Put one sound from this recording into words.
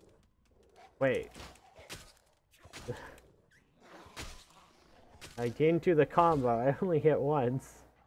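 A metal pipe strikes flesh with heavy thuds.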